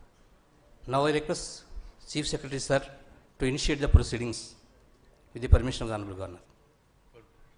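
A middle-aged man reads out loudly through a microphone, pausing between phrases.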